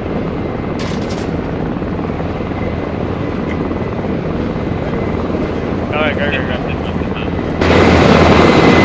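A helicopter engine roars steadily with a deep whirring of rotor blades.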